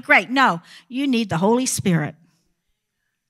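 A woman speaks into a microphone with emotion, heard through loudspeakers in a large hall.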